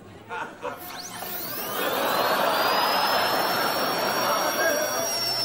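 A dental drill spins up and whines at a high pitch.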